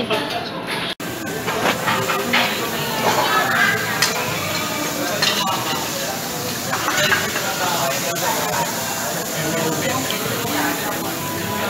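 Meat sizzles on a hot griddle.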